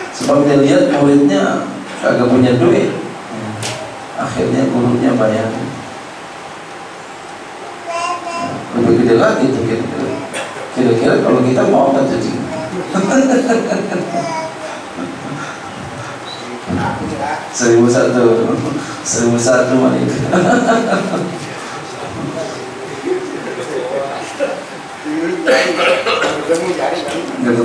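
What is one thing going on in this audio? A man speaks with animation through a headset microphone in a slightly echoing room.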